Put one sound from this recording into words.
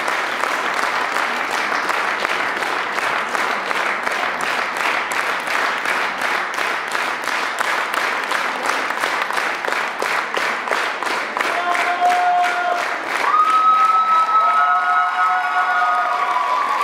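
An audience claps together in a steady rhythm.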